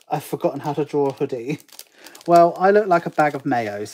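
A foil packet tears open.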